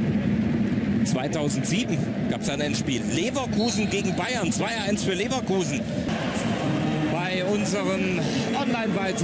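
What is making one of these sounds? Fans in a stadium cheer, sing and whistle loudly.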